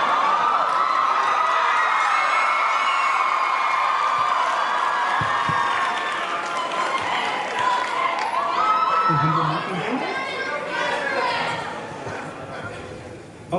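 Music plays over loudspeakers in a large hall.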